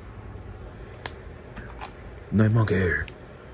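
A plastic action figure's joints click softly as they are bent.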